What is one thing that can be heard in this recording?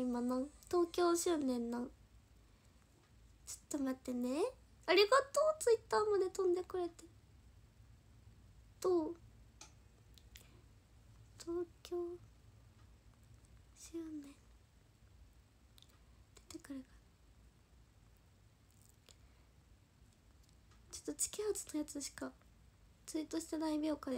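A young woman talks softly and close to a microphone, in short bursts with pauses.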